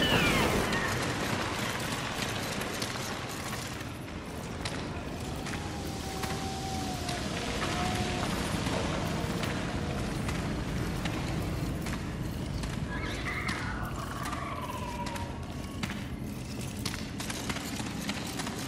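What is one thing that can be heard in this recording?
Footsteps run quickly over rocky ground.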